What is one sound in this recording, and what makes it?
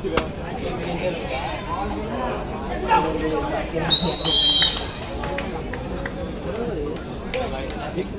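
Young men shout to each other on the court.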